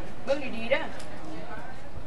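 A woman speaks through a loudspeaker.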